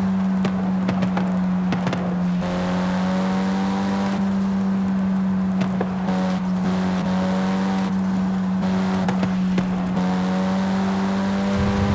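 Tyres roar on the road surface.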